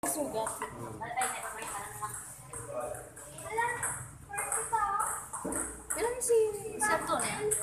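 Young girls chatter nearby in an echoing hall.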